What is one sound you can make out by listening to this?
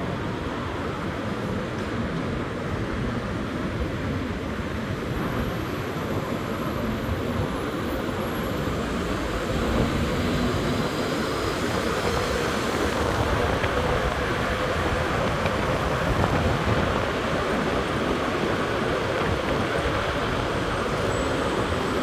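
Traffic rumbles along a busy road.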